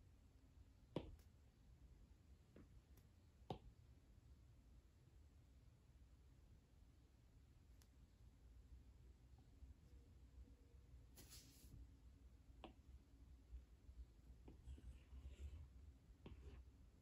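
A stylus taps on a tablet's glass.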